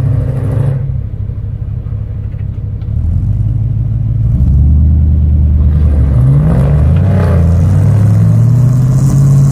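A truck's engine strains as it pulls through deep snow.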